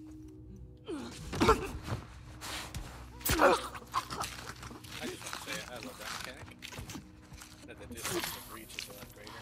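A man grunts and groans while struggling.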